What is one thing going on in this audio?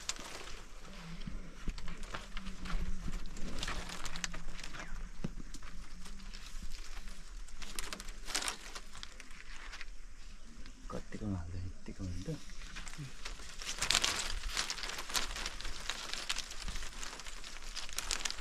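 Dry palm leaves rustle and crackle as they are handled.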